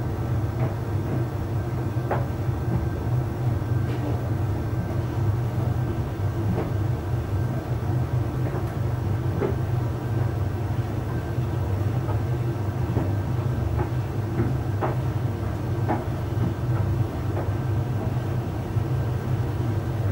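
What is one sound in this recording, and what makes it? Clothes tumble and thump softly inside a dryer drum.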